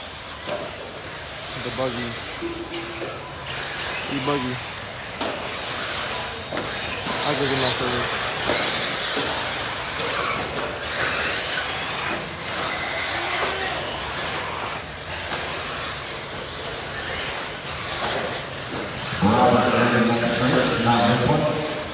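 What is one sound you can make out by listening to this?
Small electric model cars whine and buzz as they race around a large echoing hall.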